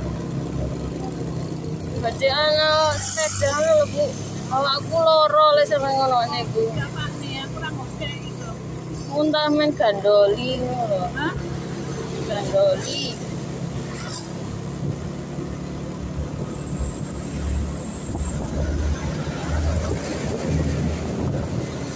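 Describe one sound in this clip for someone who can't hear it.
A car engine hums low and steadily.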